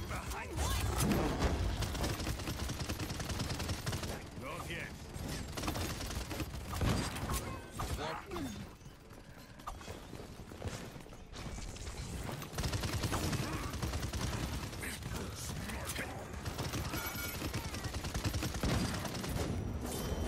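Rapid gunfire crackles in a video game.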